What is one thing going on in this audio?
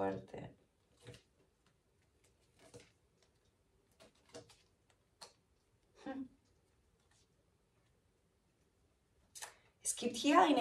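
Playing cards rustle and tap softly as they are handled.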